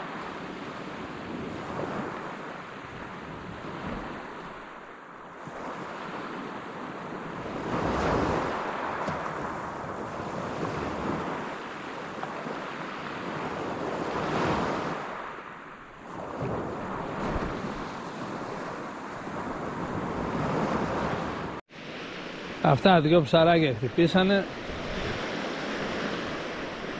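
Waves wash in and rush over stones in slow, repeating surges.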